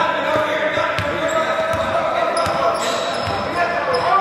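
A basketball bounces on a wooden court in an echoing hall.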